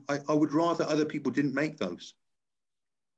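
An older man speaks calmly and close to the microphone.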